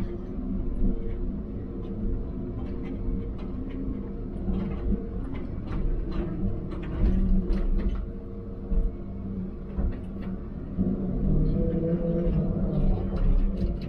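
A heavy diesel engine rumbles steadily from inside a machine's cab.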